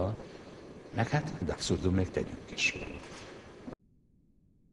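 A middle-aged man speaks calmly into a nearby microphone.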